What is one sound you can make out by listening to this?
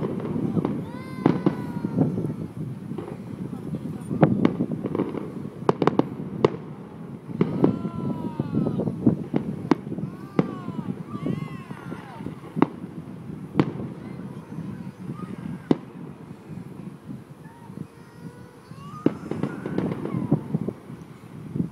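Aerial fireworks shells burst with sharp bangs in the distance.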